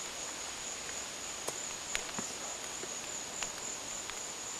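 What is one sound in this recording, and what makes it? Footsteps crunch on dry ground and move away.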